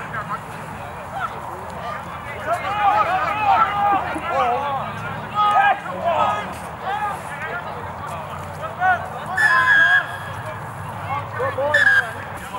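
Men shout and call out across an open field at a distance.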